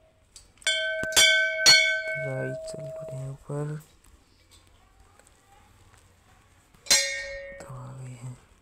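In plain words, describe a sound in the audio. A temple bell rings loudly with a ringing tone.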